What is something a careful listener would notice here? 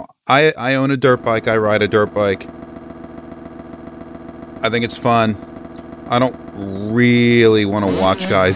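Motorbike engines idle and rev loudly.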